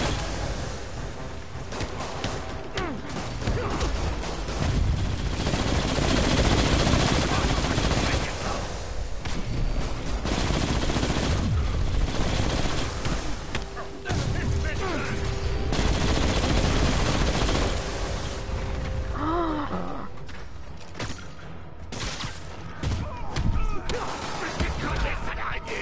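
Game fighting thuds and hits sound.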